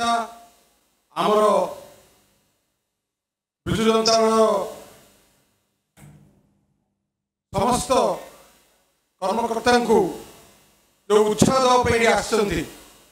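A man speaks over a microphone and loudspeakers, in bursts with pauses.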